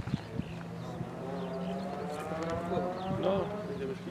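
A rally car engine revs in the distance.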